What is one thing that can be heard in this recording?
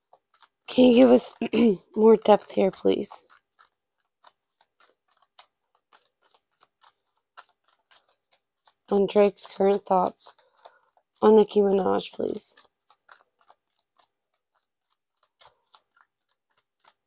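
Playing cards riffle and shuffle.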